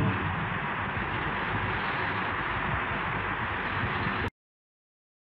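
An acoustic guitar is strummed close by.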